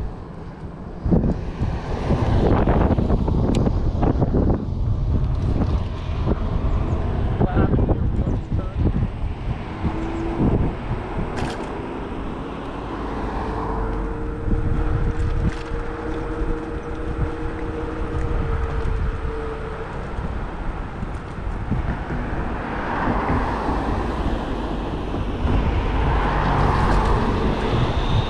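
Wind rushes loudly past the rider throughout.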